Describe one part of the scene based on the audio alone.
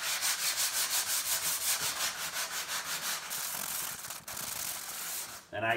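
Hands rub and scrub a leather seat with a quick, rhythmic swishing.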